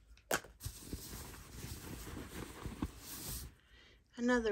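A hand rummages inside a bag, rustling the lining close up.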